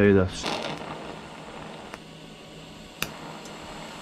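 An electric welder crackles and buzzes.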